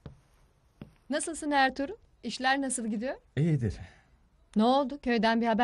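A young woman speaks nearby.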